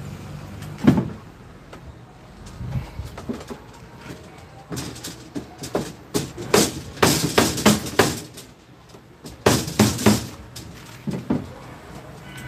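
Metal tubing clanks and rattles against a metal cabinet.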